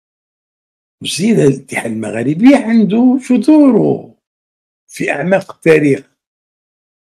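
An older man speaks with animation through a microphone.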